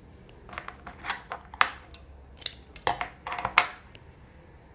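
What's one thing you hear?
Scissors snip through yarn.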